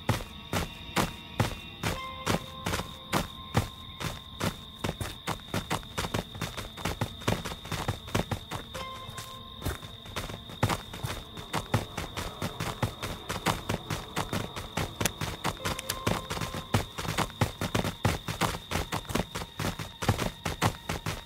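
Quick footsteps crunch on a gravel path.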